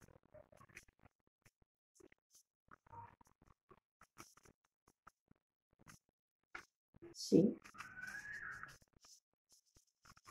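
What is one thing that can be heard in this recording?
Paper rustles and crinkles in a woman's hands.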